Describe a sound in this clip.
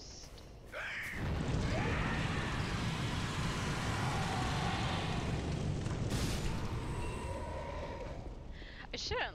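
Fire roars loudly.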